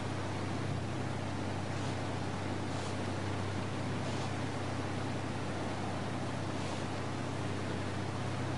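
Water splashes and hisses against a moving boat's hull.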